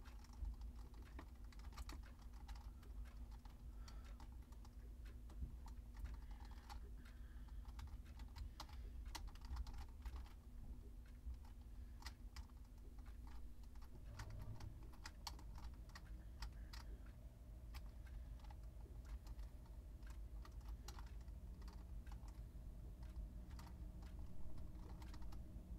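Retro video game sound effects blip and click repeatedly.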